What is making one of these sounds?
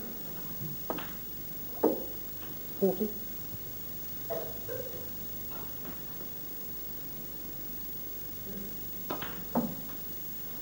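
Snooker balls knock together with sharp clicks.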